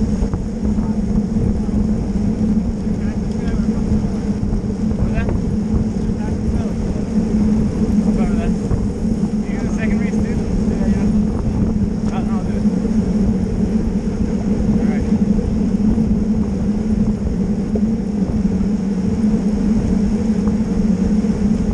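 A bicycle drivetrain whirs and clicks.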